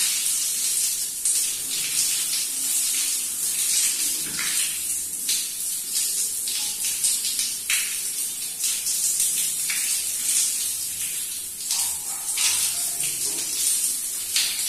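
Hands scrub lathered hair.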